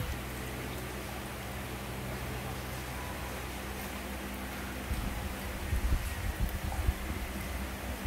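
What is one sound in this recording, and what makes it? A knife slices through a ripe mango.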